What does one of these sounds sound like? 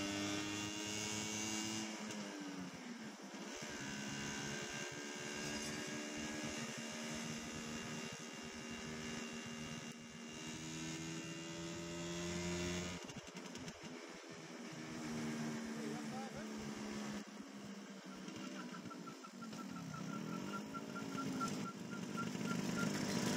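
A scooter engine hums and revs up and down while riding.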